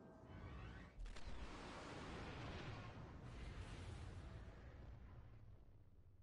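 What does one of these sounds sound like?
A loud whoosh sweeps past and fades.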